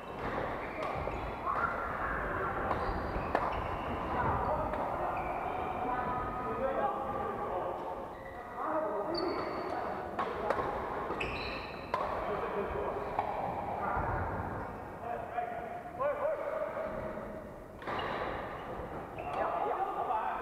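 Shoes squeak on the wooden floor.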